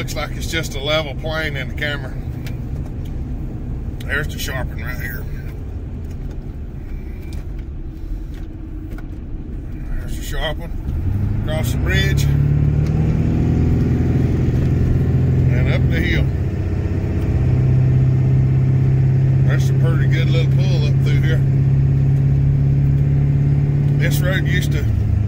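A car engine hums from inside the car, growing louder and steadier partway through.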